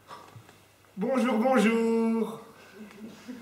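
A man sings out a held phrase in a large echoing hall.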